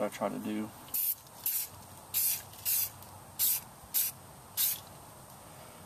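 An aerosol spray can hisses in short bursts.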